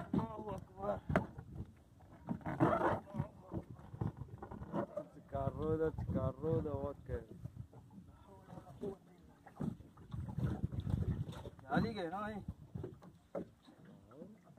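Water splashes against the hull of a small boat.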